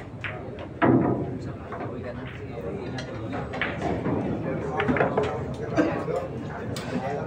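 Pool balls click against each other on the table.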